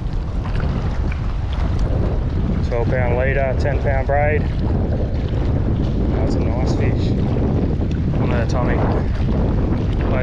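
A fishing reel clicks as its handle turns.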